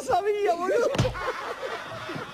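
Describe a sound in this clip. A man's body thuds onto the floor.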